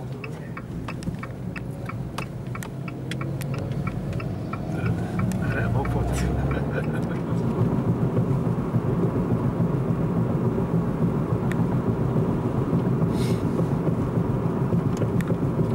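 Tyres roll steadily on the road.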